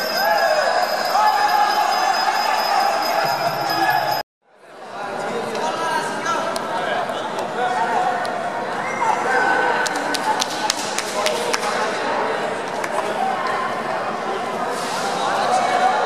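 A crowd of spectators chatters and cheers in an echoing hall.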